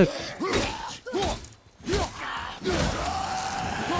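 An axe strikes enemies with sharp, heavy impacts.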